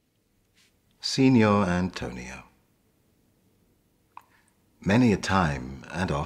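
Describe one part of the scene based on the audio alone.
A man speaks expressively, close to the microphone, with pauses.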